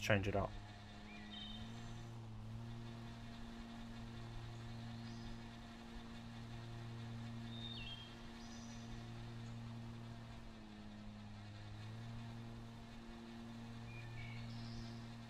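A ride-on mower engine hums steadily, its pitch dipping slightly now and then.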